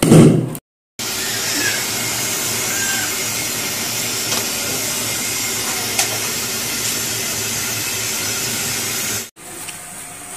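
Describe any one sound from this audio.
A gas flame roars steadily in an oven.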